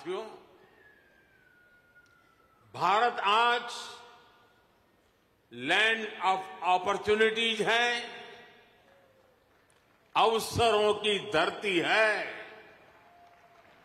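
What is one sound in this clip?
An elderly man speaks forcefully through a microphone in a large echoing hall.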